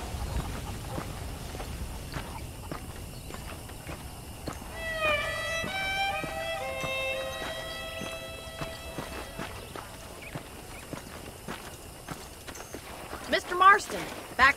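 Footsteps crunch on a dry dirt path.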